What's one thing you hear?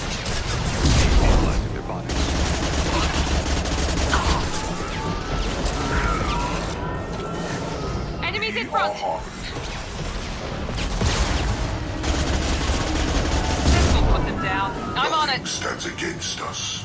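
Energy weapons fire in loud bursts.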